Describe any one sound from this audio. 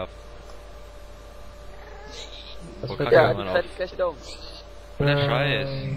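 A creature grunts nearby.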